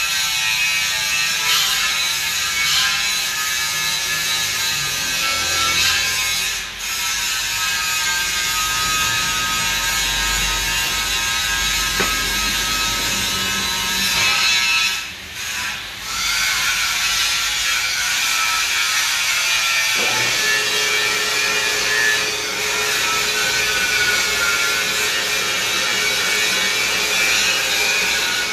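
A metal lathe hums and whirs steadily.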